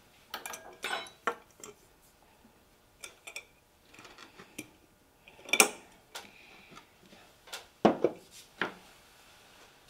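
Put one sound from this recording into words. A glass jar is set down on a wooden table with a knock.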